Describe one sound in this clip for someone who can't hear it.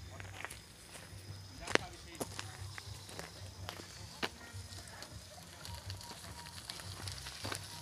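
A bicycle rolls by on a dirt road.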